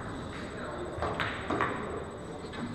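A cue tip strikes a billiard ball with a sharp click.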